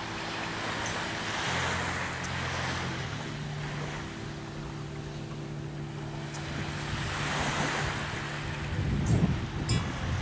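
Small waves wash gently onto a shore.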